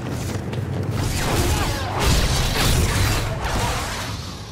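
Blaster shots crackle in quick bursts.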